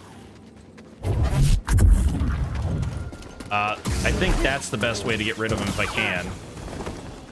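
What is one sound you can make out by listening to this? A lightsaber hums and clashes against blades in a fight.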